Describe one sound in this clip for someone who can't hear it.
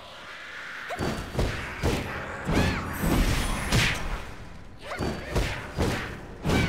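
Sword blows strike with sharp impacts.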